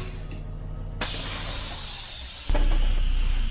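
Bus doors open with a loud hiss of air.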